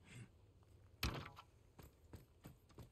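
A wooden ladder knocks against a stone wall.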